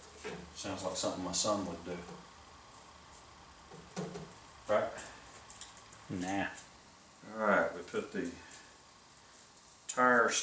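A middle-aged man talks calmly to the listener nearby.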